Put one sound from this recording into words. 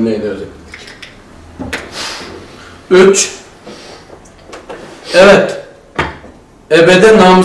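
A man speaks calmly in short bursts.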